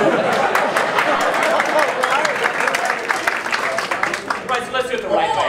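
A crowd laughs and cheers.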